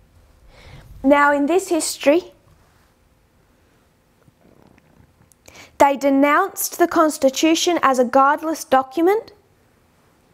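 A young woman speaks clearly into a close microphone, in short bursts with pauses.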